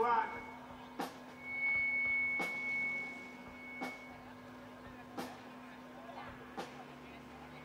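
A drum is struck in single loud hits.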